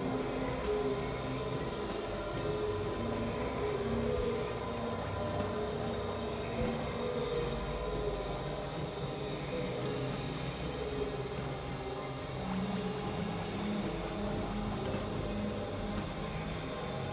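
An electronic keyboard plays a steady run of sustained synth notes.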